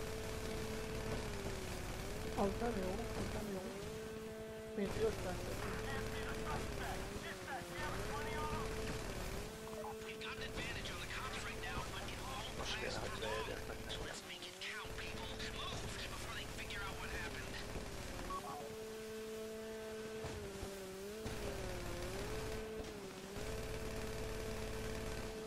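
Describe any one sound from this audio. Water splashes and rushes under a jet ski.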